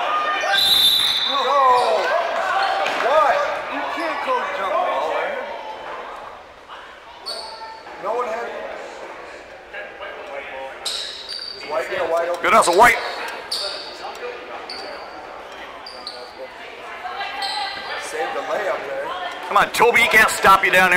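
Spectators shout and cheer in a large echoing gym.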